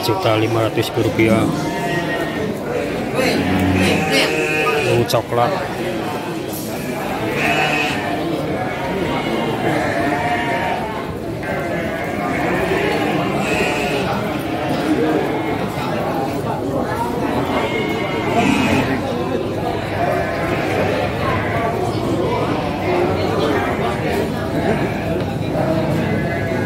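Several men talk in the background.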